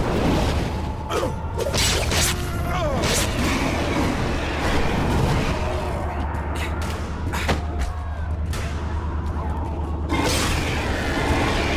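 Heavy blows and wet splatters strike flesh again and again.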